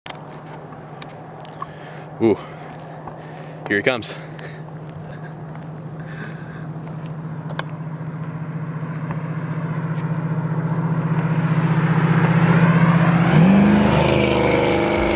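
A car engine hums steadily and grows louder as a car drives close by.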